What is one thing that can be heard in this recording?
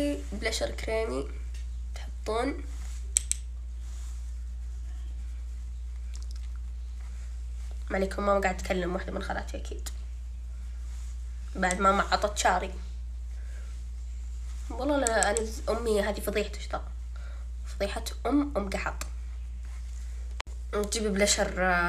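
A young woman talks calmly and close by, in short bursts.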